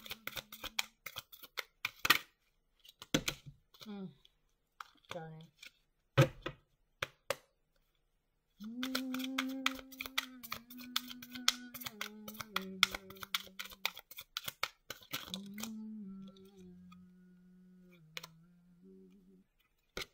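Playing cards riffle and slap together as a deck is shuffled by hand.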